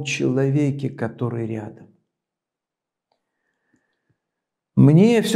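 An elderly man speaks calmly and clearly into a close microphone, pausing between phrases.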